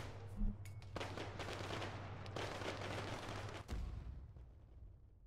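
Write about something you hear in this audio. Tall grass rustles and swishes close by.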